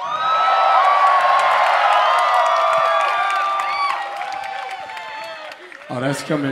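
A crowd cheers and screams loudly outdoors.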